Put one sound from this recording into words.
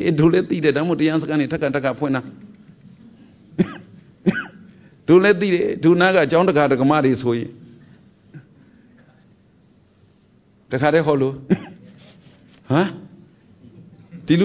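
A middle-aged man speaks calmly and close to a microphone, pausing now and then.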